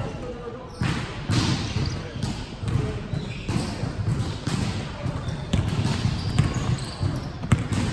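Young players call out to each other in an echoing hall.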